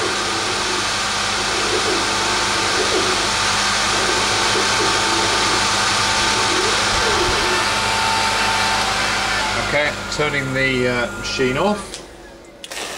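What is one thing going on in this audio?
A laser cutting machine whirs loudly and steadily, then falls silent.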